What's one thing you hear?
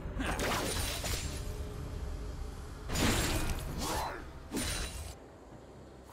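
Magic blasts and hits crackle and burst in a video game battle.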